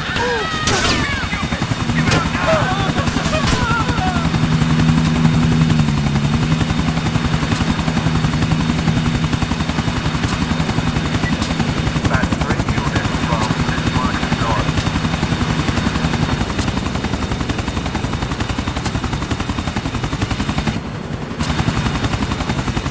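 A helicopter's rotor chops steadily and loudly.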